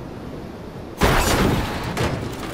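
A car crashes with a loud smash.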